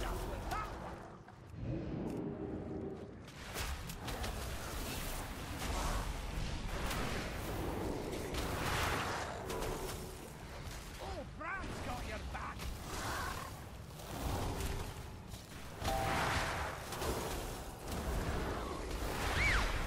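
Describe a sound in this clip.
Magic spells crackle and burst in a game battle.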